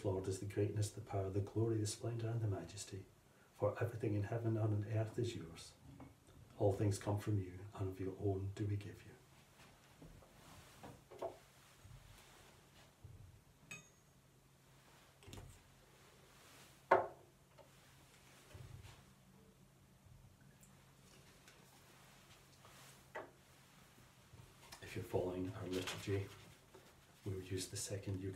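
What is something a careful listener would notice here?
A middle-aged man speaks calmly and solemnly, close by.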